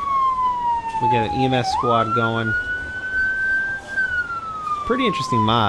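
An emergency vehicle's siren wails steadily, slowly rising and falling in pitch.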